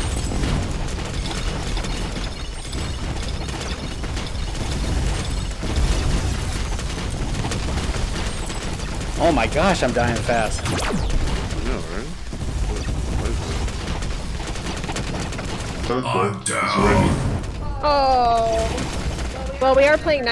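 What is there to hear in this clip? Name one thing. Laser guns zap and fire rapidly.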